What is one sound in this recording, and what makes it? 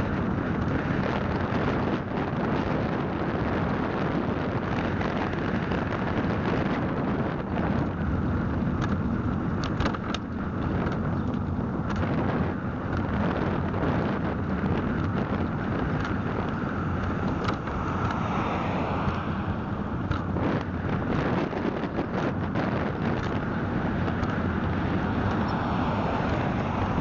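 A small vehicle's motor hums steadily as it drives along a street.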